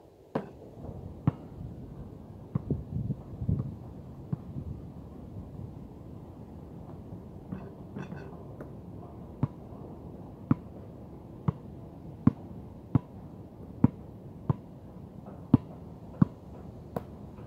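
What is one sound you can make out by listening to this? A basketball bounces sharply on a hard outdoor court, again and again.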